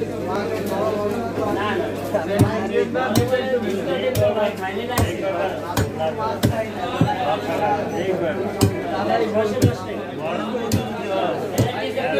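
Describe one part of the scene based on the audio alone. Fish is chopped against a blade with regular thuds.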